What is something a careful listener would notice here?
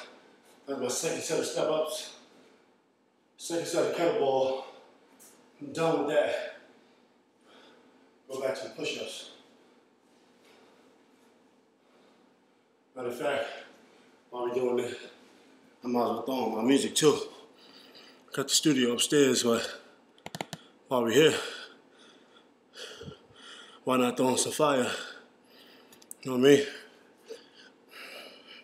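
A man talks with animation, close by, in a small echoing room.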